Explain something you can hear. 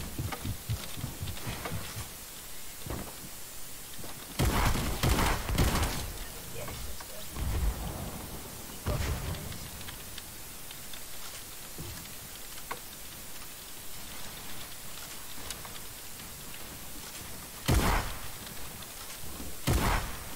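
Wooden walls and ramps clatter into place.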